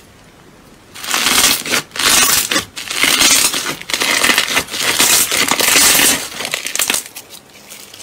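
Hands squeeze crunchy foam-bead slime, which crackles densely.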